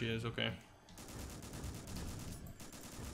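A rifle fires in a rapid burst that echoes through a large hall.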